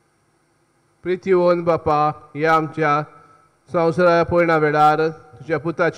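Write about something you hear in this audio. A man chants loudly into a microphone in an echoing hall.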